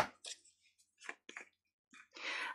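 A small plastic jar lid clicks as it is twisted shut.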